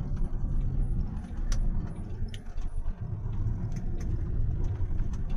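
A vehicle's engine rumbles low and steady while driving on a road.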